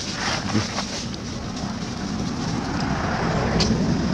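Dry leaves rustle and crunch as a monkey moves over them.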